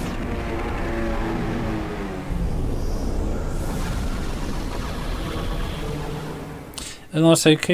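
A deep, roaring blast of energy rumbles loudly.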